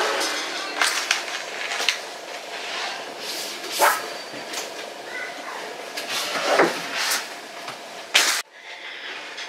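Things rustle and knock as they are handled close by.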